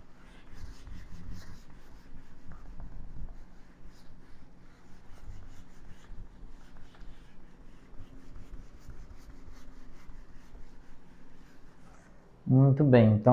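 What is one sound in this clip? A man erases a whiteboard with soft rubbing strokes.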